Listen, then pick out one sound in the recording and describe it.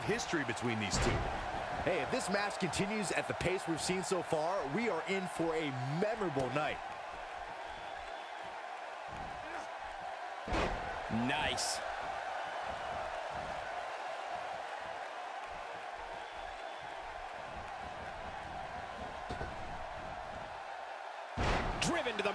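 Bodies slam heavily onto a wrestling mat with loud thuds.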